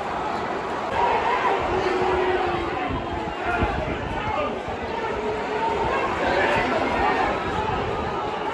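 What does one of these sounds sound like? Nearby spectators shout and call out.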